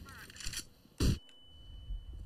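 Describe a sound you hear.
A flash grenade goes off with a sharp loud bang.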